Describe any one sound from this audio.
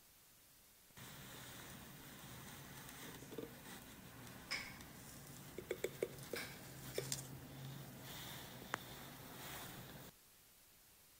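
Thick batter plops softly into a crust.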